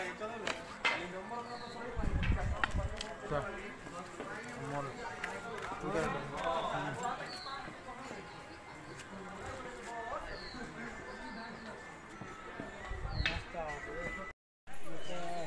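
Men talk and call out nearby outdoors, among a murmuring crowd.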